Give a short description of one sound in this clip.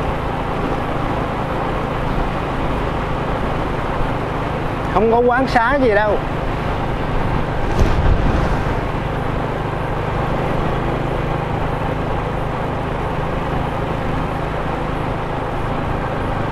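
Wind rushes steadily past on a moving motorcycle.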